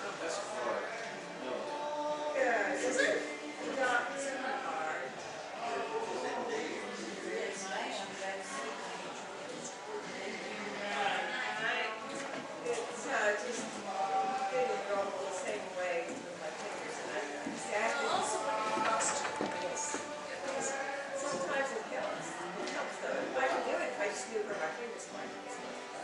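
Adult men and women chat and talk over each other in a room with some echo.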